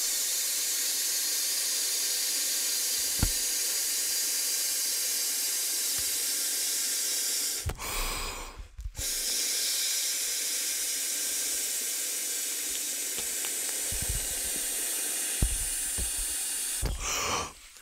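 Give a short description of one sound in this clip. A man blows air into a plastic inflatable close to a microphone.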